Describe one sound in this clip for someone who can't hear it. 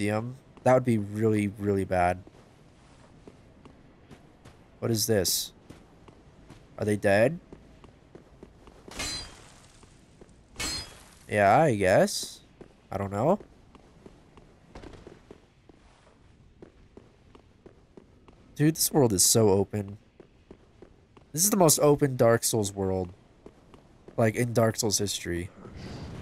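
Armoured footsteps clatter on stone.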